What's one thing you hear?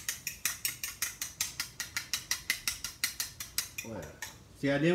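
A fork clicks rapidly against the inside of a ceramic bowl.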